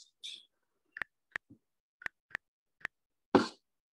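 Keyboard keys click in quick taps.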